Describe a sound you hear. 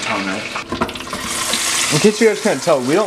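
Hot oil sizzles in a fryer.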